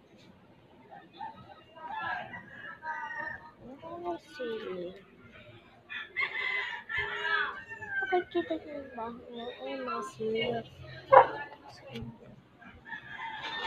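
A young girl talks close by, casually.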